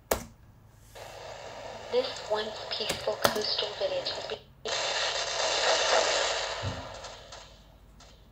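Game sound effects play loudly from a speaker, with blasts and bursts of noise.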